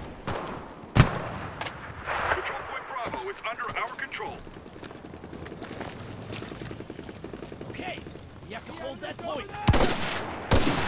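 A rifle fires a loud shot close by.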